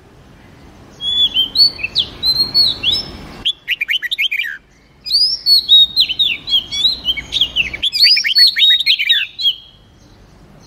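A songbird sings a rapid, varied song of whistles and chirps in bursts.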